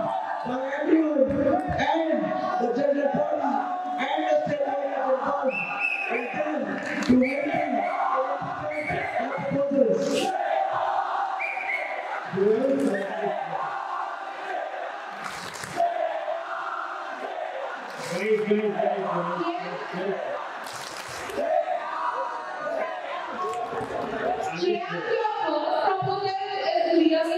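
A young man speaks steadily into a microphone through loudspeakers in a large echoing hall.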